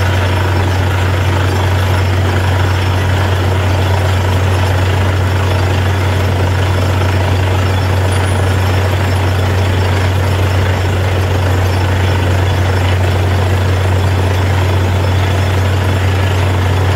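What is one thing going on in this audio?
A drilling rig's diesel engine drones loudly and steadily.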